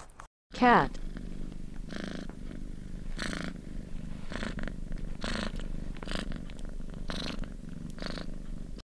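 A cat purrs softly and steadily.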